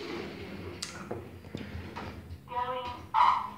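A sliding steel lift door rumbles shut.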